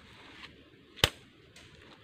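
A slingshot's rubber band snaps sharply.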